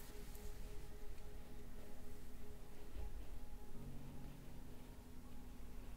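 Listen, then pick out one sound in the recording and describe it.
A brush scratches softly through hair.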